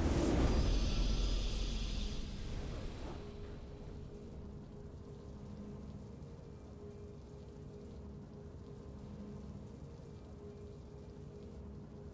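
A triumphant fanfare swells and then fades away quietly.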